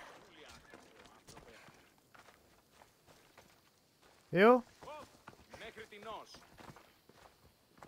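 Footsteps crunch on dry grass and gravel.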